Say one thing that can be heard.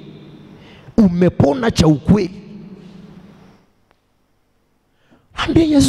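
A man preaches loudly with animation into a microphone.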